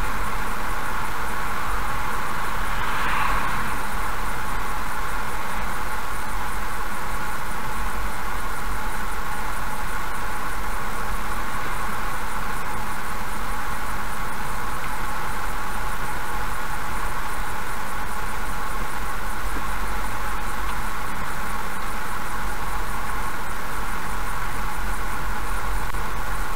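A car drives steadily along a wet road with a constant rumble.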